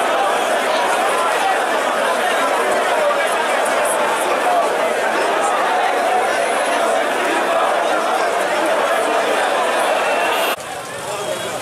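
A large crowd of men shouts and chatters loudly outdoors.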